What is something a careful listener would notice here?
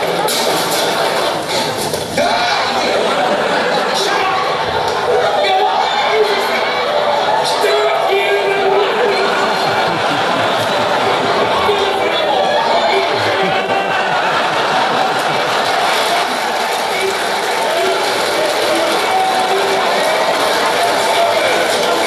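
A man speaks loudly and with animation, heard through a television speaker.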